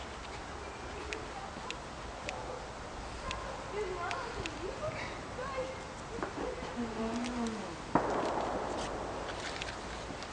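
Paper crackles softly as it burns.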